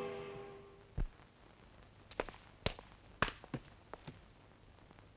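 Objects knock lightly on a wooden table.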